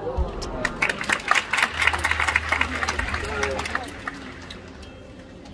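A gymnast's feet thump and patter on a wooden beam in a large echoing hall.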